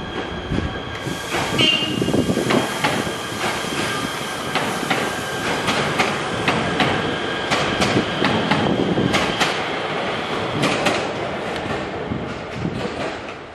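Brakes squeal from a passing train.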